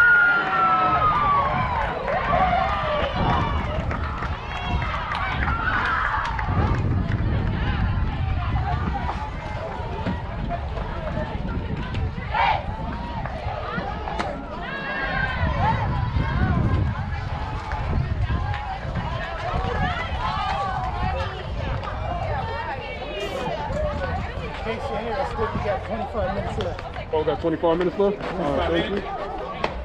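A group of young women cheer and shout nearby, outdoors.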